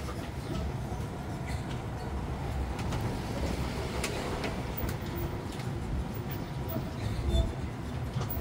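A small road train rumbles and rattles along at low speed.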